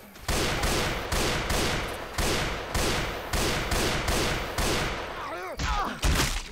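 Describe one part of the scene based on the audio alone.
A rifle fires a rapid series of loud shots.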